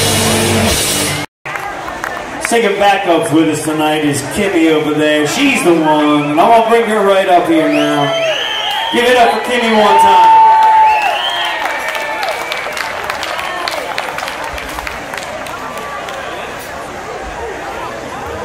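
A rock band plays loudly on an outdoor stage.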